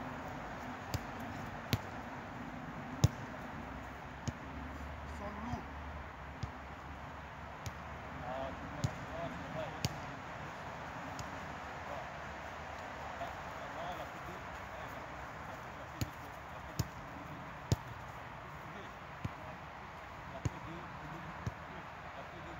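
Footballs are kicked with sharp thuds, outdoors.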